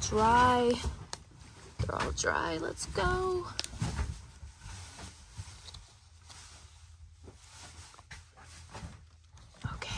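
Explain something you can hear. Paper cards rustle and flick in a hand.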